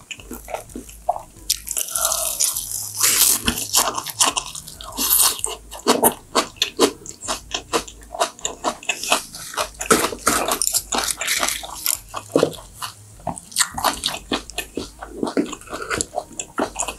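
A young woman chews crunchy food loudly and wetly close to a microphone.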